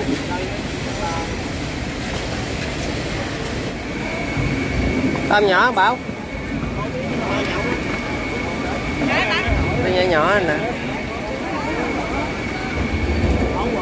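A busy crowd murmurs and chatters in the background.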